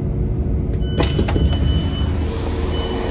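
A train door slides open.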